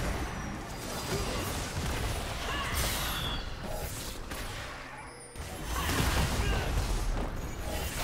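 Game sound effects of spells and attacks clash and whoosh.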